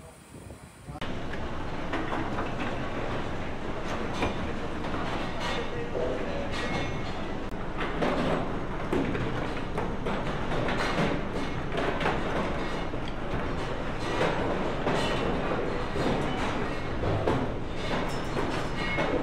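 A conveyor belt rumbles steadily, carrying lumps of coal.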